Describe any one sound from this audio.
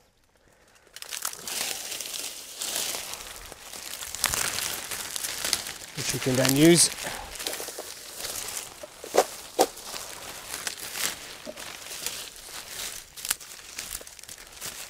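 Dry reeds rustle and crackle as a man gathers them into a bundle.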